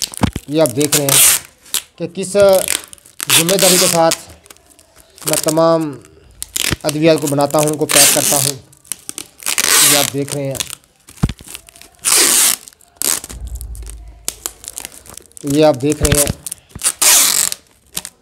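Paper and tape crinkle as a parcel is handled.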